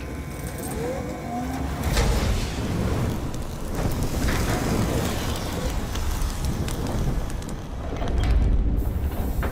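A machine hums with a deep, steady rumble.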